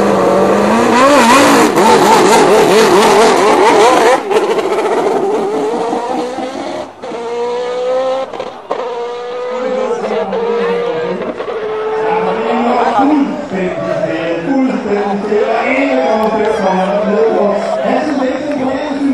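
A racing car engine roars as it launches and speeds away.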